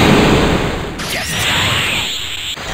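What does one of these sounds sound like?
A crackling energy aura hums and surges.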